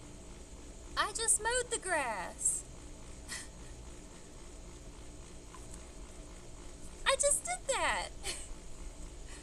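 A young woman speaks close by with animation, her voice rising and falling.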